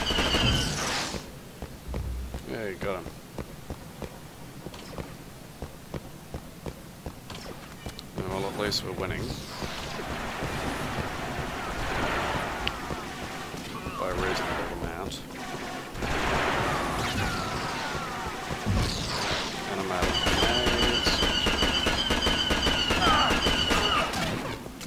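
Laser blasters fire in short bursts.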